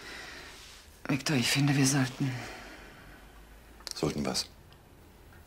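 A man speaks briefly in a low, calm voice nearby.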